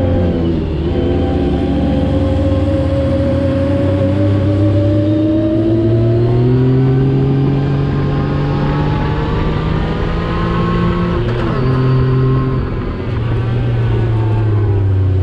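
Wind rushes past in a steady roar.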